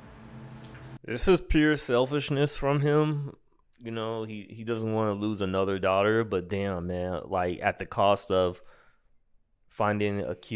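A man talks with animation, close into a microphone.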